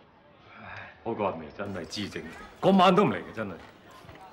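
A middle-aged man speaks loudly nearby.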